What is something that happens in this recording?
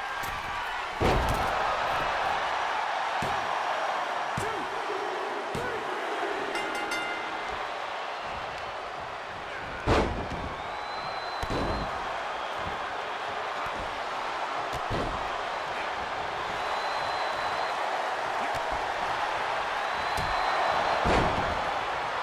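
Heavy bodies thud onto a wrestling ring mat.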